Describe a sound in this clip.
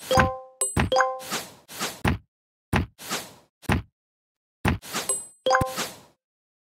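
Short cartoonish popping sound effects play in quick bursts, some with bright chimes.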